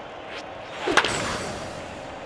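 A bat cracks against a ball once.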